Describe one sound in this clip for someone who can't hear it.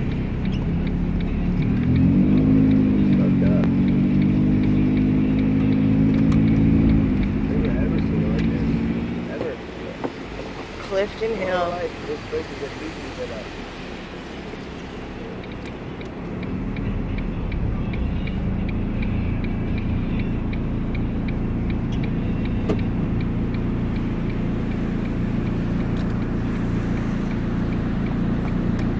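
A car engine hums and revs as the car drives.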